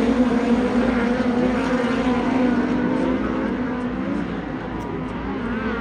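Several race car engines roar loudly as they speed around a dirt track.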